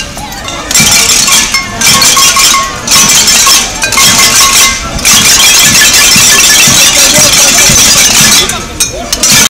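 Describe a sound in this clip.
Tambourines and coin belts jingle loudly in rapid bursts.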